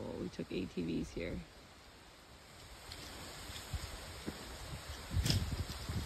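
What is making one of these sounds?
Wind rustles through palm fronds outdoors.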